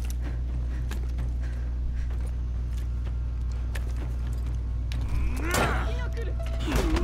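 Weapons clash and swoosh in a fight.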